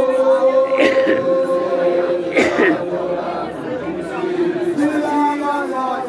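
A lively crowd chatters and shouts nearby.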